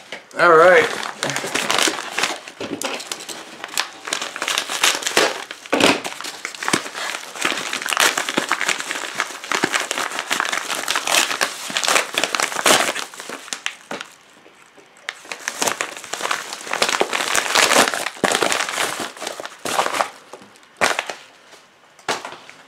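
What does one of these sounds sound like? A padded paper envelope crinkles and rustles as hands handle it.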